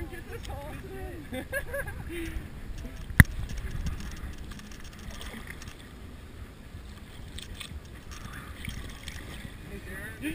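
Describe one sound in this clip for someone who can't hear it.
Water laps against a boat's hull.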